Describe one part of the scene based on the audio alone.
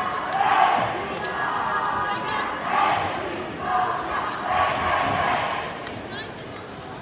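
A large crowd cheers and shouts in an echoing hall.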